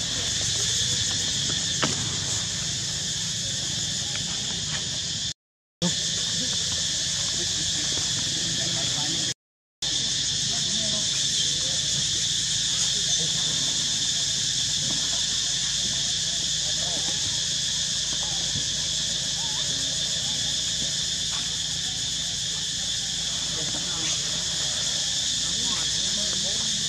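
Dry leaves rustle under scampering monkey feet.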